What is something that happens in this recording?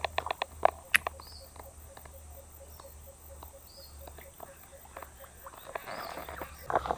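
A baitcasting reel ticks as its line is wound in.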